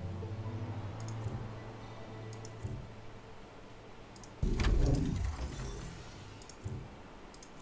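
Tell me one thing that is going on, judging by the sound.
Soft interface clicks sound several times.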